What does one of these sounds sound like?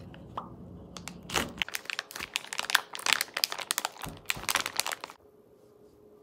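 Plastic wrap crinkles and rustles.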